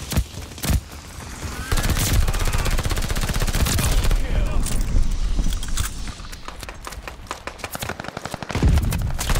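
A machine gun fires in rapid, loud bursts.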